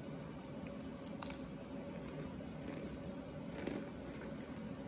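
A woman crunches on a lump of dry starch.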